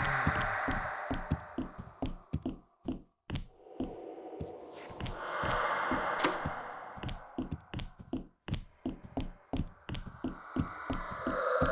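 Footsteps thud steadily on a hard floor.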